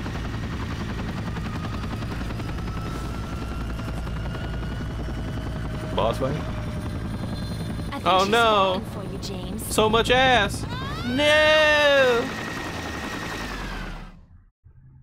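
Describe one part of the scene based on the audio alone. A helicopter's rotor whirs steadily.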